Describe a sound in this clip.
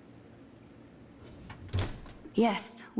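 A wooden drawer slides open with a knock.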